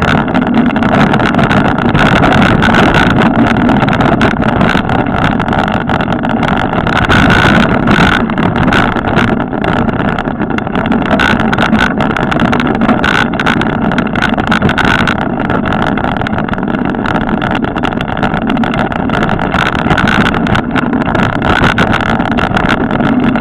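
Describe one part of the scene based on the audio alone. Tyres roll and crunch steadily over a bumpy dirt trail.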